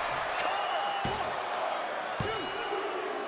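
A referee's hand slaps the mat in a count.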